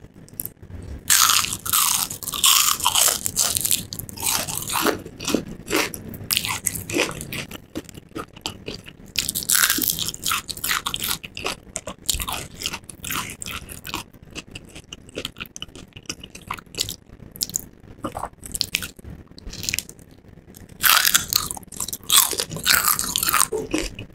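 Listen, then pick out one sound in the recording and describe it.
A woman bites into crispy fried chicken with loud, close crunching.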